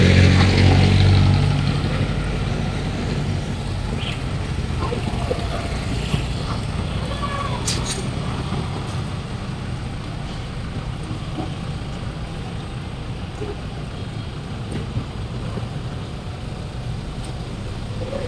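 Traffic hums steadily along a busy city street.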